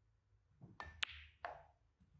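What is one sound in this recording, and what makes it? A cue ball clicks sharply against another ball.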